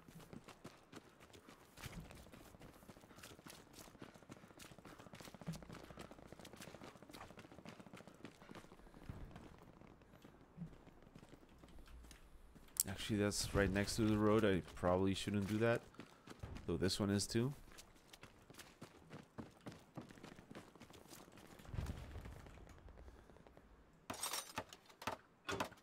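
Footsteps crunch on dirt and grass.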